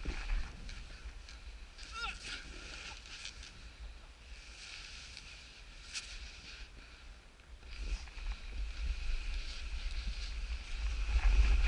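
Snowboard edges scrape and hiss over packed snow.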